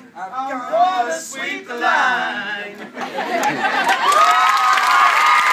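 A group of men and women sing loudly together close by.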